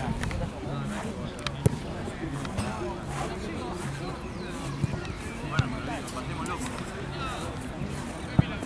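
Players shout to each other in the distance across an open field.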